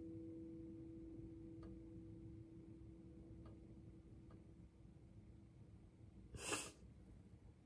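An acoustic guitar chord rings and slowly fades.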